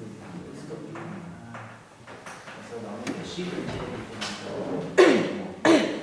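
A man lectures calmly in an echoing room.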